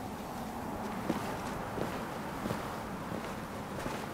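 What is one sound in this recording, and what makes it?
Footsteps fall lightly on sandy ground.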